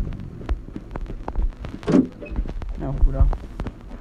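A door creaks open and shuts.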